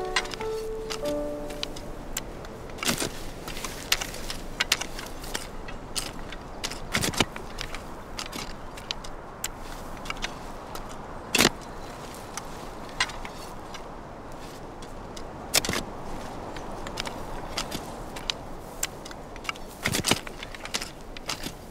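Hoes strike the soil with dull, uneven thuds.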